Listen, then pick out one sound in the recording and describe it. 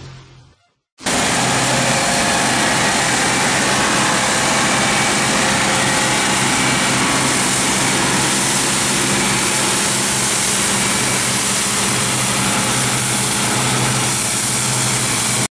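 A combine harvester engine roars steadily close by.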